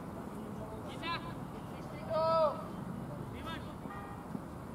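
A man shouts a short call across an open field.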